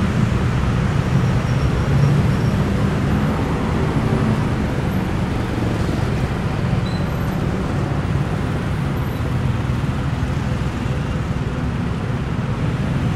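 City traffic rumbles and hums steadily nearby.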